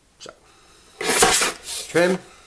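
A hand slides a card across a plastic board.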